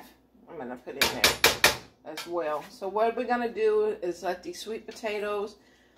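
A spoon scrapes inside a metal pot.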